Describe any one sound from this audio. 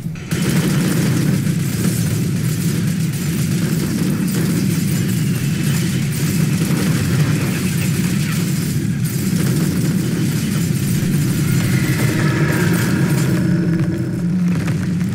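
A flamethrower roars steadily.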